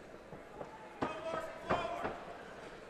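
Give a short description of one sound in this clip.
Blows land with sharp thuds on a body.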